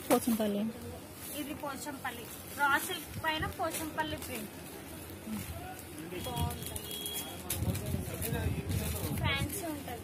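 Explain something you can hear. Fabric rustles as hands handle it.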